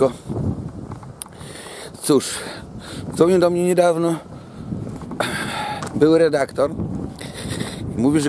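A middle-aged man talks with animation close to the microphone.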